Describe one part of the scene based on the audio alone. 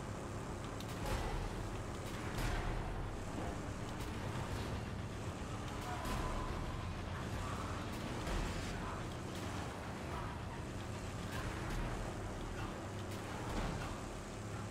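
Metal vehicles crash and scrape together.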